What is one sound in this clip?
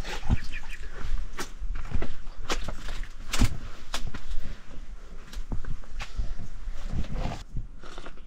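Footsteps scuff across the floor.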